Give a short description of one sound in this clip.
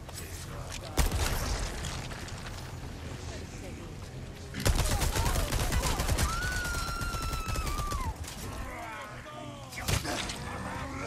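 Gunshots ring out sharply.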